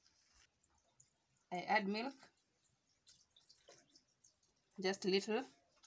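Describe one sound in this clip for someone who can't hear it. Milk pours into a blender jug with a soft splashing trickle.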